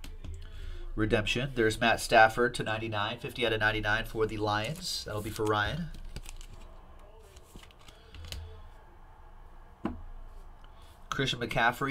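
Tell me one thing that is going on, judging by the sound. Plastic card cases clack softly on a table.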